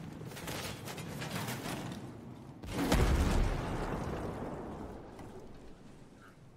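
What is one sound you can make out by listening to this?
Boots clang on metal stairs.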